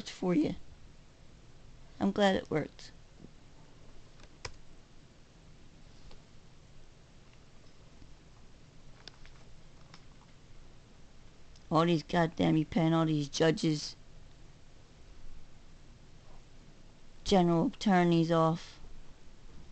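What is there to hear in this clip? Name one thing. A middle-aged woman speaks close to the microphone in short bursts.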